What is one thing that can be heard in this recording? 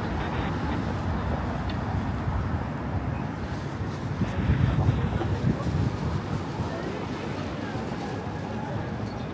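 Wind rumbles outdoors, gusting louder for a moment.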